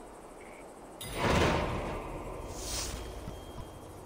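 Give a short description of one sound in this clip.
A magical shimmering whoosh sweeps up.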